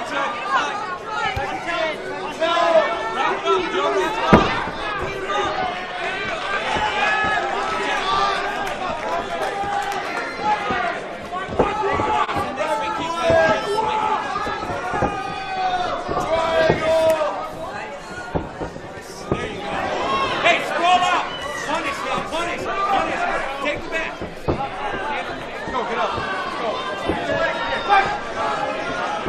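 A crowd cheers in an indoor arena.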